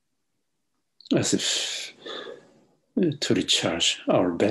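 A middle-aged man speaks calmly through an online call.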